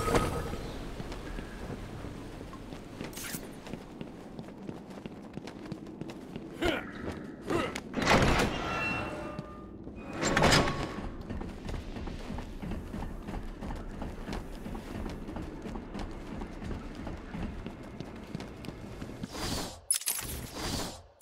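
Footsteps walk steadily over a hard stone floor.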